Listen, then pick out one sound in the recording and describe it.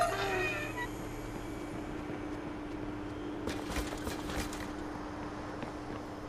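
Footsteps patter quickly on a hard rooftop.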